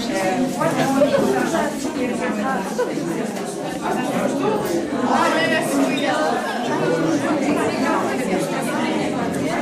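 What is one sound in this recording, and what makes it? A crowd of young people chatter all around in a busy room.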